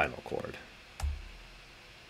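A computer mouse clicks once.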